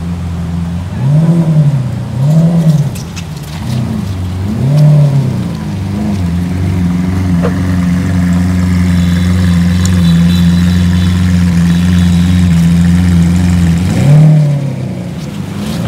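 A sports car engine revs sharply in loud bursts.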